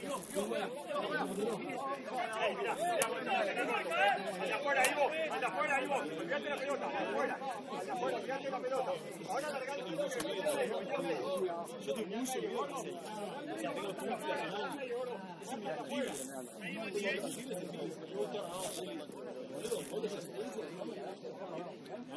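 Young men shout and call out to each other across an outdoor pitch.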